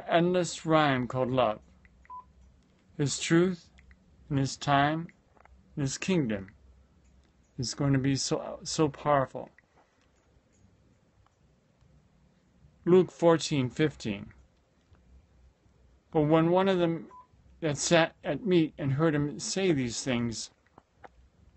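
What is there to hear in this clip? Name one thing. A middle-aged man speaks calmly and close to a phone microphone, in short bursts with pauses.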